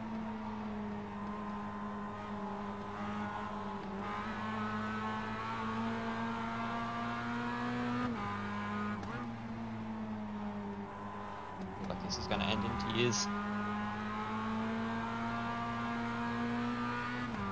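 A racing car engine drones steadily at high revs, dipping briefly as gears shift.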